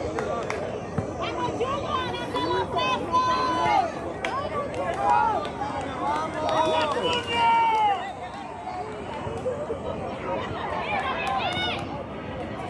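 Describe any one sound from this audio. A soccer ball thuds dully as it is kicked on grass.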